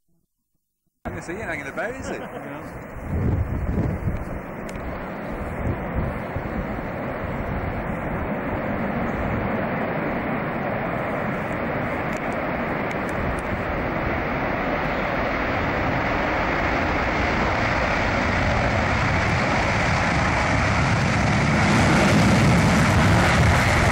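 Jet engines roar loudly and grow louder as a large aircraft speeds closer.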